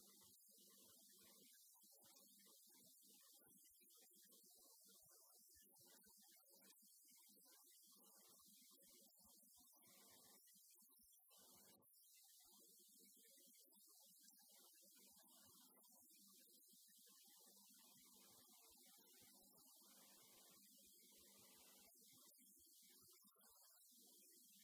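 A man lectures calmly through a microphone in a large echoing hall.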